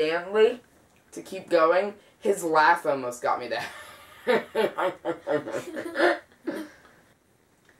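A teenage boy talks with animation close by.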